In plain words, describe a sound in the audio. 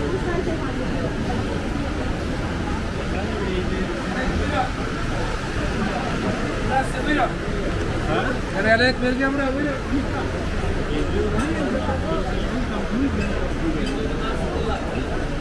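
Many people chatter and talk nearby in a busy street, outdoors.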